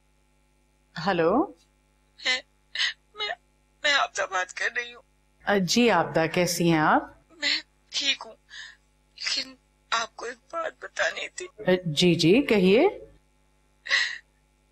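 A middle-aged woman talks on a phone with animation, close by.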